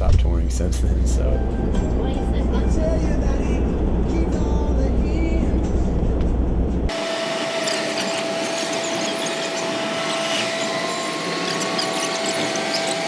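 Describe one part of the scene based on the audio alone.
A bus engine rumbles as it drives.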